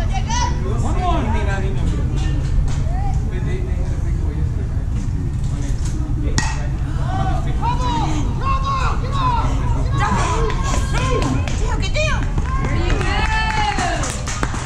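Young players and adults shout and cheer outdoors.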